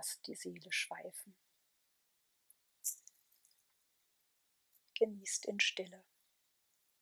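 A young woman speaks softly and calmly, in short phrases with long pauses.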